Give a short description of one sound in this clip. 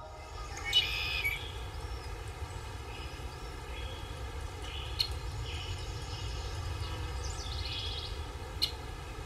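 A young man sings softly.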